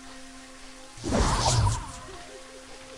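A magic spell bursts with a crackling whoosh.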